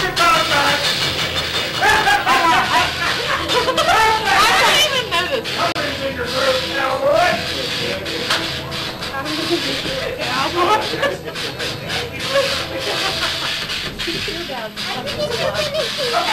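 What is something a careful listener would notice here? A man talks and laughs close by.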